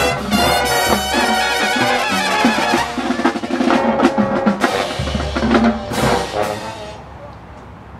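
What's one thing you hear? A band plays loudly outdoors and then stops abruptly.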